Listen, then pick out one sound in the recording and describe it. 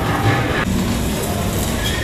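Metal cake pans clink against a rack.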